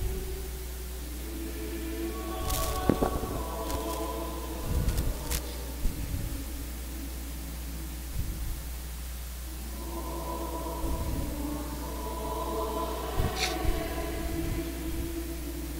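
A man chants slowly in a large echoing hall.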